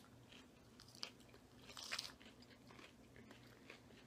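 A man chews crunchy salad close to a microphone.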